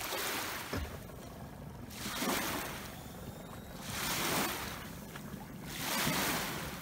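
Small waves lap and splash against the shore close by.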